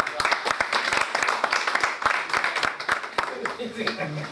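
Several people applaud in a room.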